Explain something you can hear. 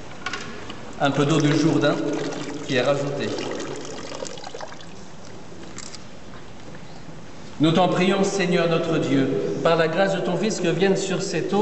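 A man chants prayers in a large echoing hall.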